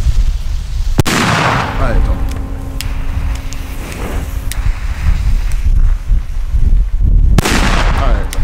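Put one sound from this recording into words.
A firework goes off with sharp bangs.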